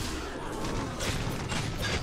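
A large beast roars.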